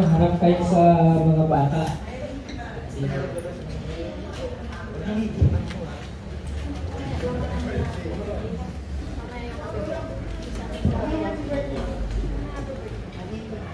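A group of people talk and murmur in the background.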